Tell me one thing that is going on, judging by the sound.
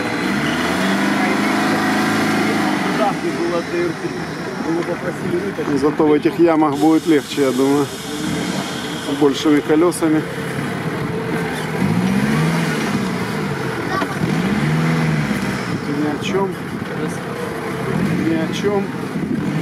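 An off-road truck engine roars and revs loudly.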